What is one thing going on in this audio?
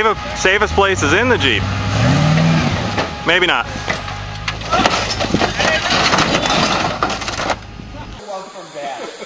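An engine roars as an off-road vehicle climbs rocks.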